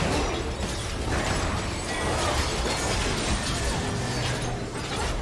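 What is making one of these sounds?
Game spells and attacks crash and whoosh in a busy battle.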